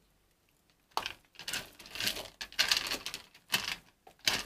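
Dry litter pellets rattle as they are scooped and poured into a tray.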